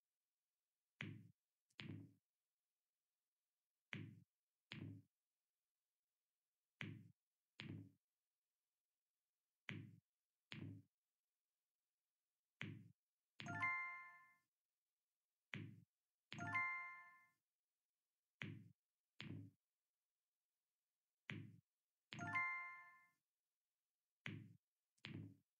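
Game balls click softly as they are picked up and dropped.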